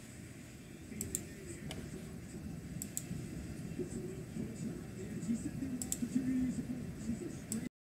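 Short electronic game blips chirp in pairs.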